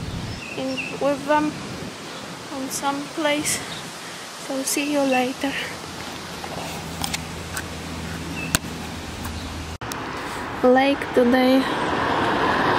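A woman talks casually, close by.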